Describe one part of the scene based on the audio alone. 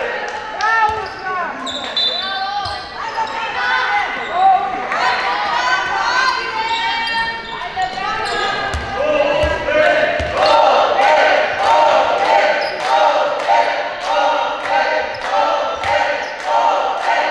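Girls shout and call out in a large echoing hall.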